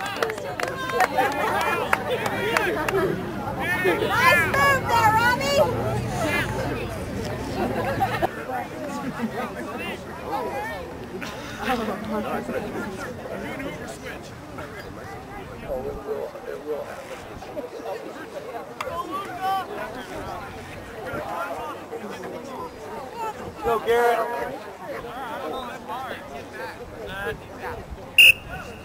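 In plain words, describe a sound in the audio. Young players shout and call out across an open field outdoors.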